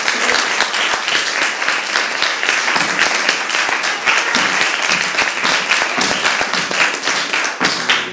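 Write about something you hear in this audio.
Several people clap their hands in rhythm.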